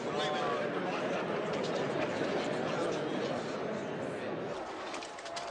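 A crowd of men murmurs and talks loudly in an echoing hall.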